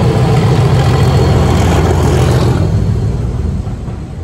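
Train wheels clatter over the rails as coaches pass close by.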